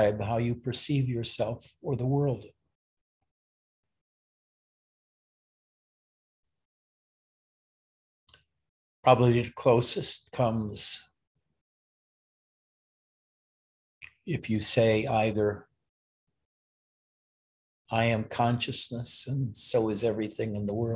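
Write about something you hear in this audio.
An elderly man speaks calmly and close to the microphone, with long pauses.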